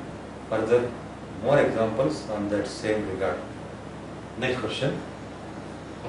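An older man speaks calmly and nearby, as if teaching.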